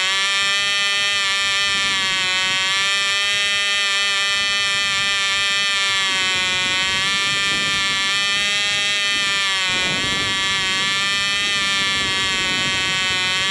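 A small model engine runs at high speed with a loud, steady buzzing whine that wavers slightly in pitch.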